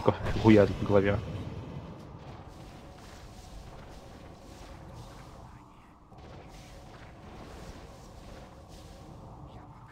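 Magic spells crackle and whoosh during a battle.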